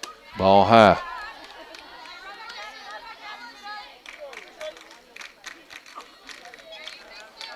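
A crowd murmurs and cheers outdoors.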